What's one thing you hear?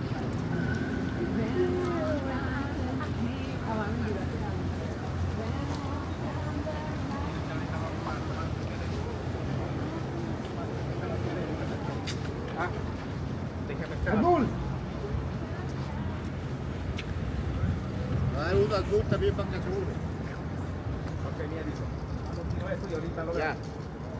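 Traffic rumbles steadily outdoors on a city street.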